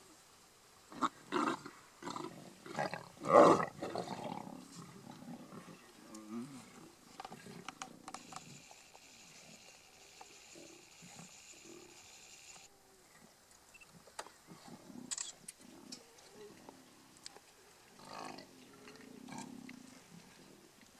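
Lions growl and snarl close by over a kill.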